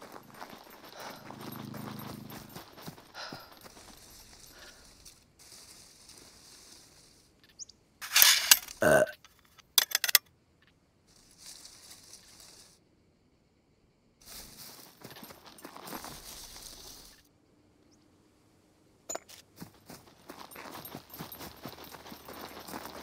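Footsteps crunch on dry ground and gravel.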